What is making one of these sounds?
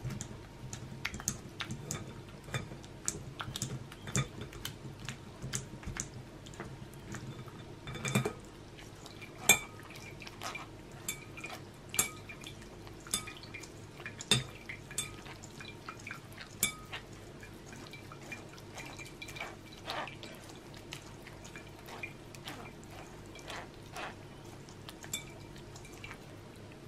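A spoon scrapes and taps against a metal mesh sieve.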